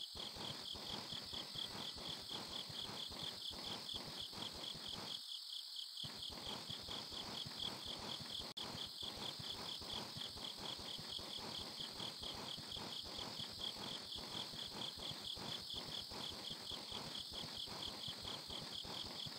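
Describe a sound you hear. Footsteps patter quickly and steadily on a hard floor.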